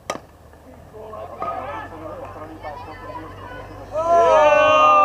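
Players shout and cheer across an open field.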